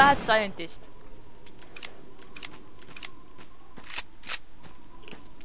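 A drum magazine clicks and snaps into a gun.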